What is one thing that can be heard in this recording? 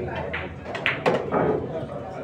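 Billiard balls clack together.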